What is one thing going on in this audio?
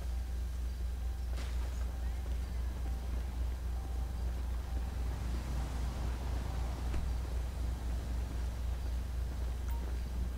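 Footsteps crunch on gravel as two people walk.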